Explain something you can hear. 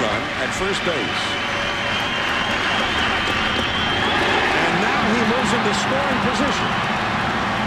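A large crowd roars and cheers in an open stadium.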